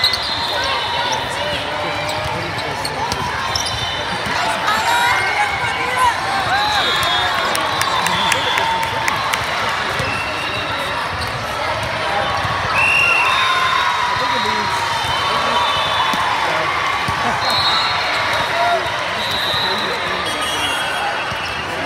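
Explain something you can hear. A large crowd chatters and cheers, echoing through a big hall.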